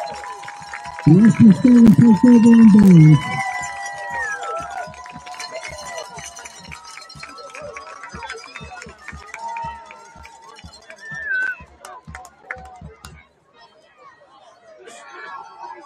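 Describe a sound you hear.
A crowd cheers and chatters in the open air.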